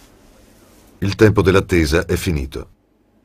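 An elderly man speaks in a deep, solemn voice.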